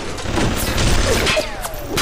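Electricity crackles and sparks.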